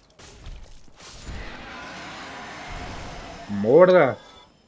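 A dragon's breath blasts with a rushing roar.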